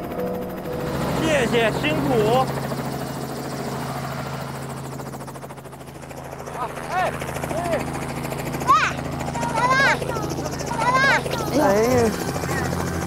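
A helicopter engine drones steadily.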